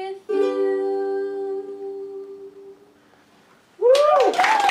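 A ukulele chord rings out and fades.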